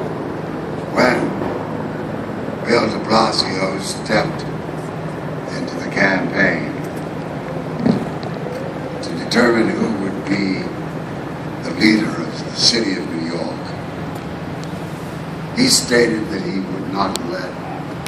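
An elderly man speaks slowly and deliberately over loudspeakers outdoors, with echo.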